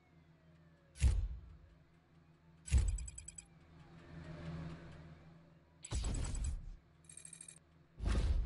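Short game menu chimes sound a few times.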